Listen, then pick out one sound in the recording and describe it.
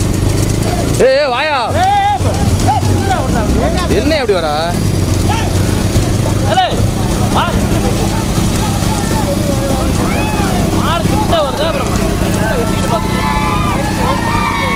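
Men in a crowd shout and cheer loudly.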